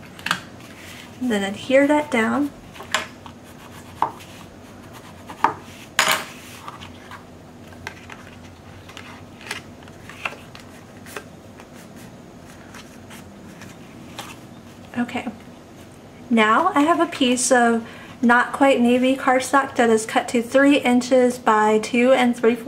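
Stiff paper rustles and taps as it is folded and handled.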